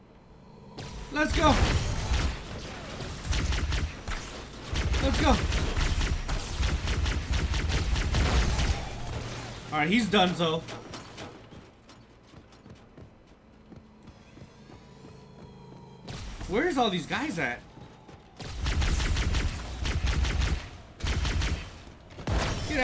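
Rapid energy weapon fire crackles in bursts.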